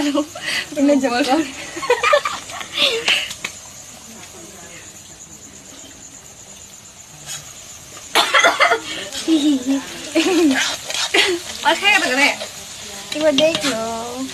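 Young women talk and laugh close by, with animation.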